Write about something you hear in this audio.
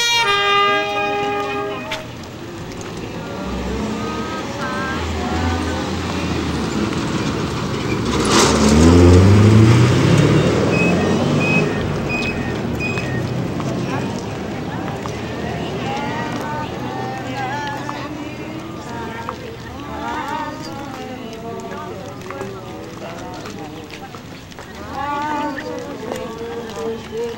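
A crowd of men and women chatter outdoors as they walk.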